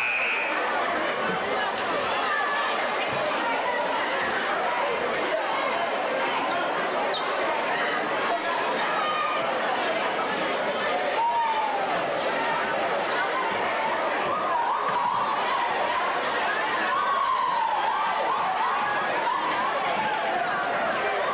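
A crowd chatters and cheers loudly in a large echoing gym.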